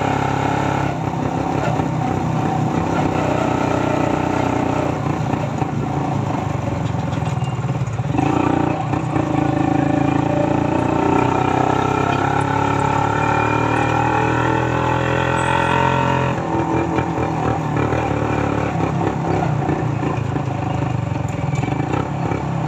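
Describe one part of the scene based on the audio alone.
A motorcycle engine runs steadily up close, revving and easing off.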